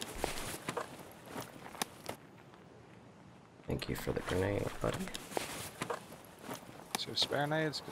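Game inventory items click and rustle as they are moved.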